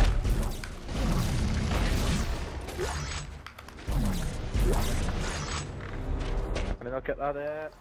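Loud crackling energy blasts whoosh and rumble.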